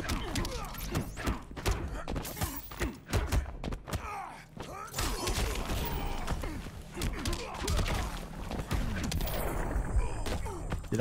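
Punches and kicks land with heavy thuds and whooshes in a fighting game.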